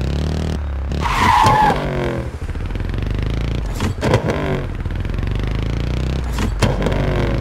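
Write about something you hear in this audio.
A motorcycle engine revs up and drops as gears shift.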